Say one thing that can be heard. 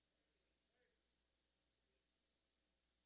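A man speaks quietly through a microphone.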